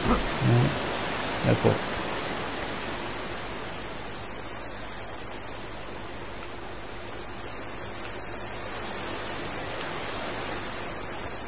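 Water rushes down a waterfall.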